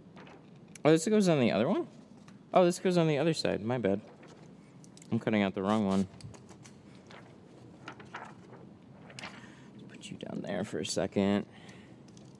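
Plastic film crinkles and rustles as it is handled.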